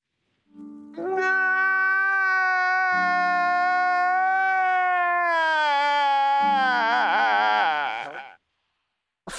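A man wails loudly in a long, drawn-out cry.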